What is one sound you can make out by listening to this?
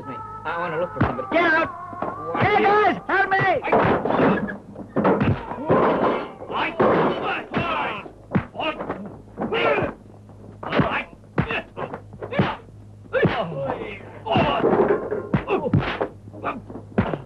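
Men shout and grunt as they fight.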